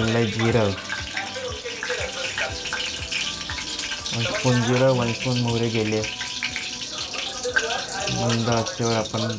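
Cumin seeds sizzle and crackle in hot oil.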